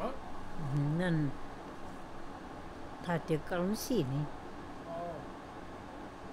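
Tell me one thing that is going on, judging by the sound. An elderly woman speaks calmly and close by, in short phrases.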